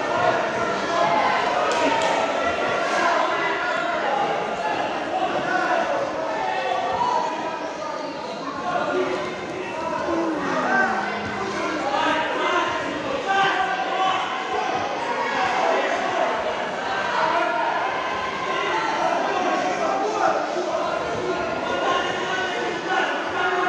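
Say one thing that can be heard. A crowd of people chatter in a large echoing hall.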